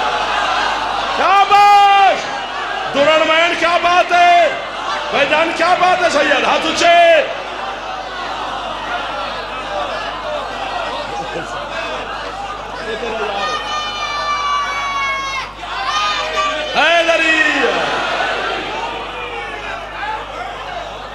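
A crowd of men murmurs and calls out in the background.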